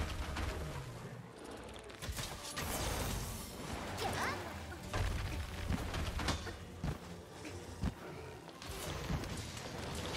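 A heavy weapon clangs and slashes against a monster.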